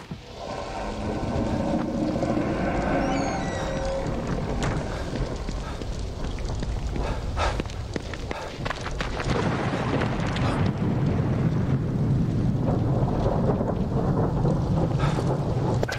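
Footsteps walk across wet pavement outdoors.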